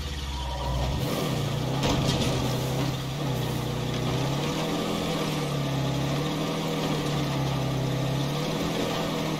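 Tyres rumble over a rough dirt track.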